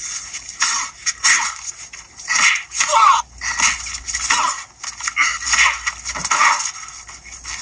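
Men grunt while fighting.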